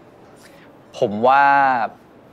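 A second young man answers with a long, drawn-out word, close by.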